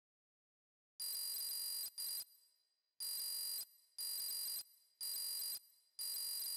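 Electronic beeps chirp in quick bursts.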